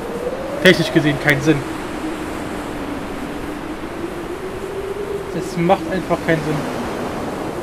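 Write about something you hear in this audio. A young man talks in short bursts into a microphone.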